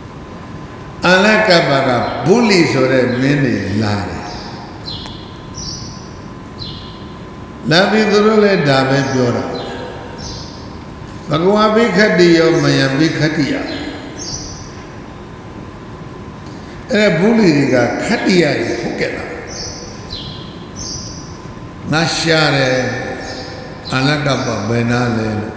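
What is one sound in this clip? An elderly man speaks slowly and calmly into a microphone, in bursts with pauses.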